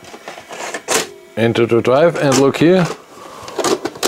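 A plastic tape cassette clicks and knocks as fingers press it into its holder.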